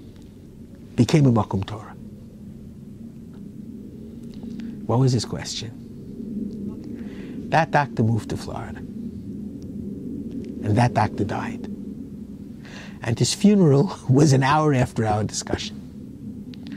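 A middle-aged man speaks calmly and expressively close to a microphone, in short bursts with pauses.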